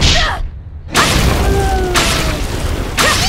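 An explosion bursts with a crackling roar.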